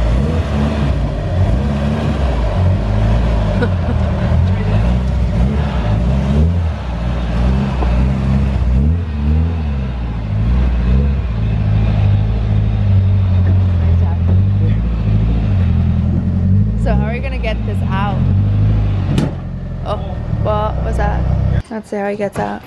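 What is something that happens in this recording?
A car engine idles with a deep, rumbling throb, then cuts off.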